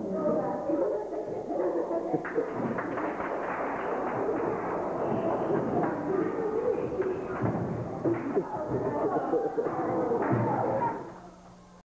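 Footsteps shuffle and stamp on a wooden floor.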